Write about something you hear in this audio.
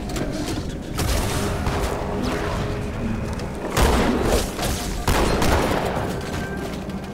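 Gunfire bursts out in loud rapid shots.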